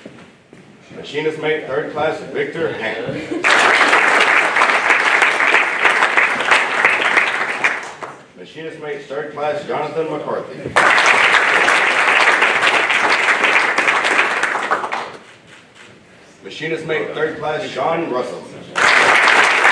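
A man reads out through a microphone in an echoing hall.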